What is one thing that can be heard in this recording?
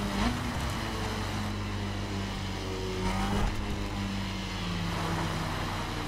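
A motorcycle engine hums steadily at speed, its pitch dipping as it slows.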